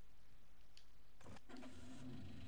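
A vehicle door shuts with a thud.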